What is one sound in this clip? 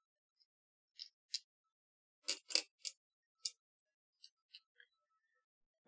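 Small plastic parts click and snap onto a metal frame.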